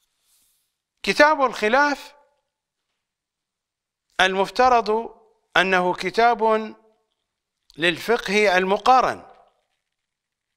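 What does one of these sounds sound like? An older man speaks calmly close to a microphone.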